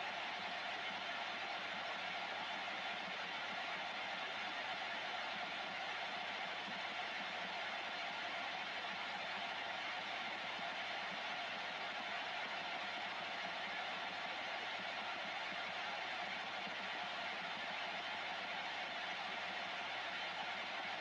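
A radio receiver hisses with steady static from its loudspeaker.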